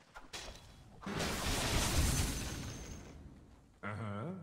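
A magic spell bursts with a rushing whoosh.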